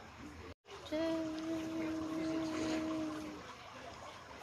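A young woman hums a steady, soft tune close to the microphone.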